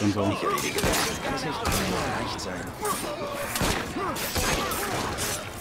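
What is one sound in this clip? Punches land with heavy thuds in a street brawl.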